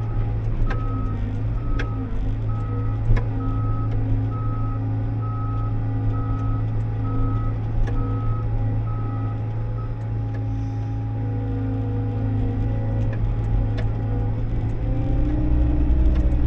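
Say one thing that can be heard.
A heavy diesel engine drones steadily close by.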